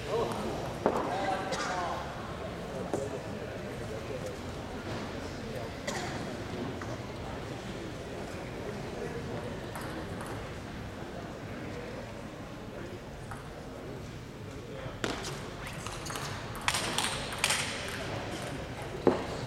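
A small audience murmurs quietly.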